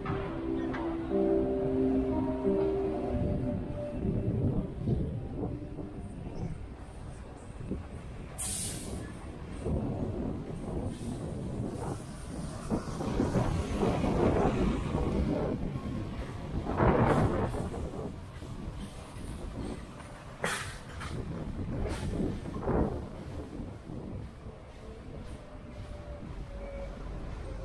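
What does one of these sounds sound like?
Traffic rumbles steadily along a busy city street outdoors.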